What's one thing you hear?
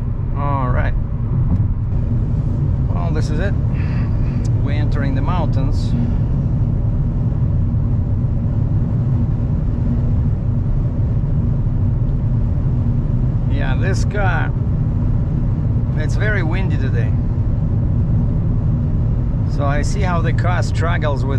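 A car engine hums and tyres rumble steadily on a highway.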